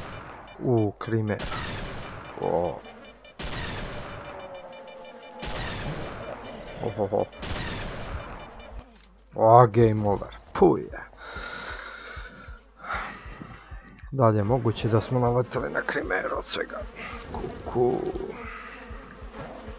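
A creature growls and snarls close by.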